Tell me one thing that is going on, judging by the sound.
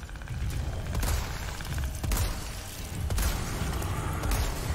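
Rifle shots ring out several times in loud bursts.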